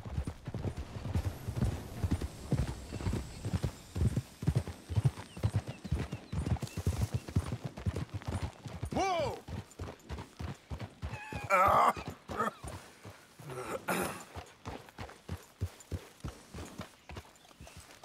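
Horses gallop with heavy, rapid hoofbeats.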